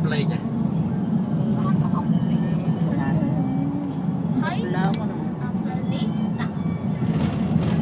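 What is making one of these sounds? Wind rushes past an open car window.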